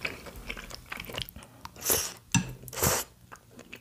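Chopsticks tap and scrape against a bowl.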